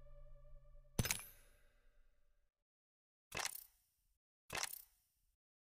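A game menu makes short bright click sounds as buttons are pressed.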